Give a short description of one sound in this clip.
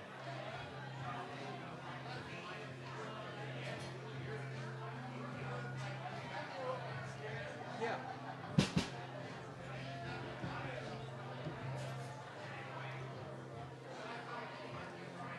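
A small band plays live music with keyboard and guitar.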